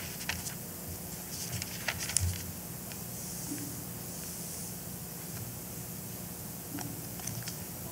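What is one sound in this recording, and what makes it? A young woman reads aloud softly through a microphone in an echoing hall.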